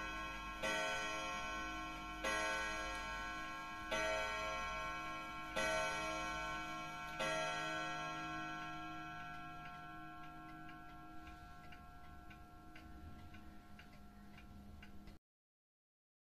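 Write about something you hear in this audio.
A wall clock chimes a slow, ringing tune that fades away.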